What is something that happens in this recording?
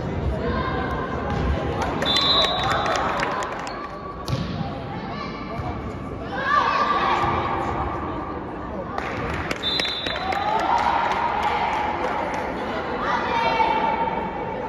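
A volleyball is struck by hands.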